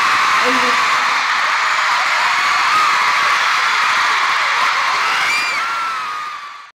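A crowd screams loudly and steadily.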